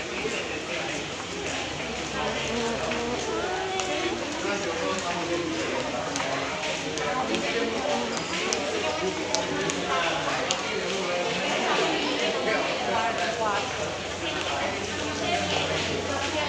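A crowd of people chatters in an echoing corridor.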